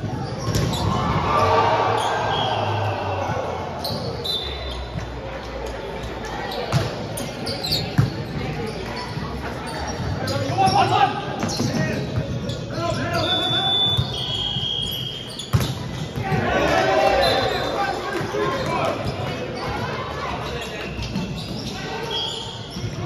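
Young men and women shout and call out across the court.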